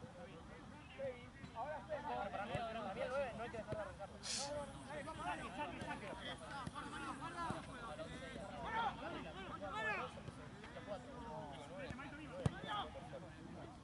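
Several young men talk and call out to each other outdoors.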